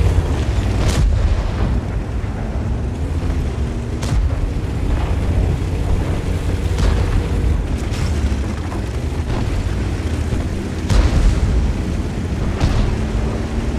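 Cannon shots boom now and then.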